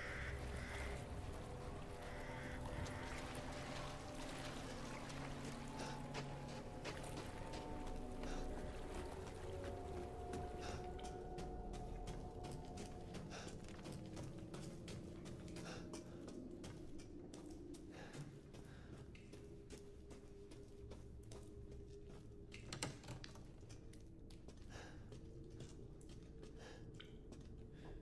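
Footsteps tread steadily.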